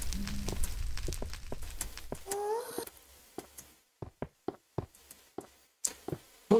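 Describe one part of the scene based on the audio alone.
Footsteps crunch steadily on rough, gritty ground.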